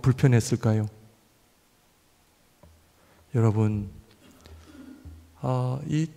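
A man speaks calmly into a microphone in short phrases, with pauses between them.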